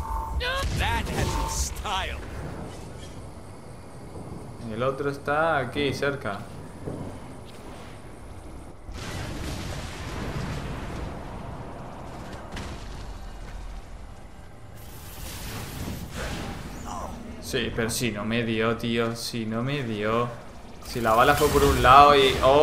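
An explosion bursts with a loud roar.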